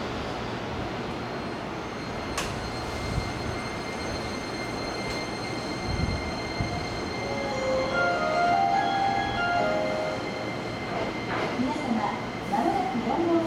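An electric train hums steadily while standing at a platform.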